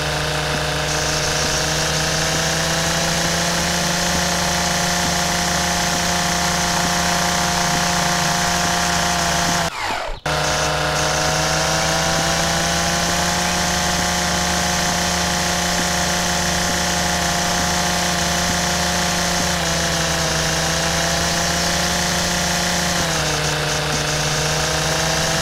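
A string trimmer engine buzzes steadily, briefly cutting out once.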